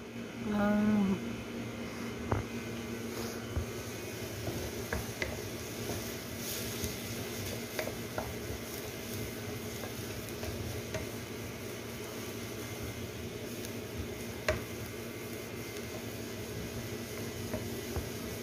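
Onions sizzle steadily in a frying pan.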